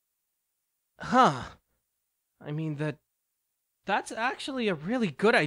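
A young male voice speaks with animation.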